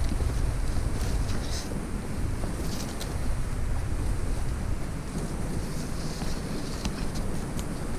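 Leafy branches rustle as a hand brushes them.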